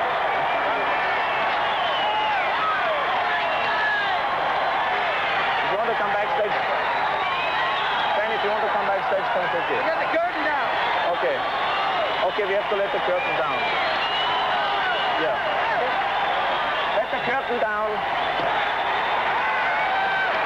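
A large crowd cheers and shouts loudly in a big hall.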